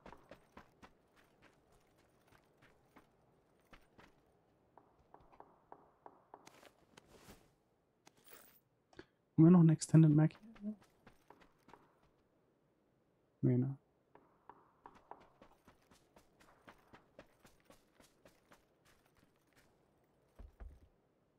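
Footsteps tap on grass and wooden floorboards.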